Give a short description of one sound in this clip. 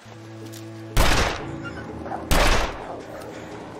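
A revolver fires two loud shots.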